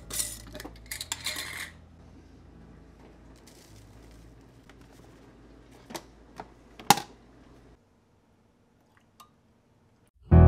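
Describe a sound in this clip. Coffee grounds pour and rustle into a paper filter.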